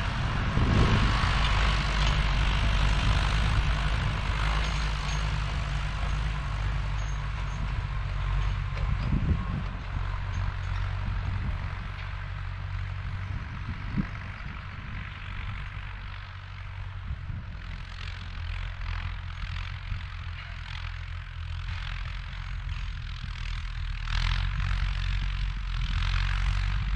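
A vintage diesel tractor chugs as it pulls a harrow across a field, moving away into the distance and coming back.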